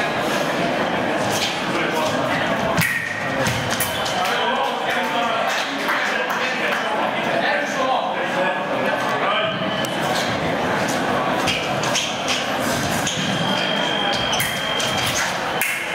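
Fencing blades clash and scrape with sharp metallic clicks.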